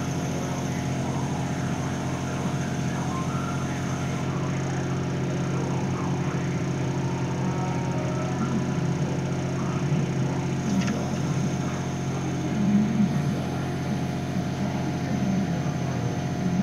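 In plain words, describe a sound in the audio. An electric motor hums steadily and whines as a mechanical arm moves.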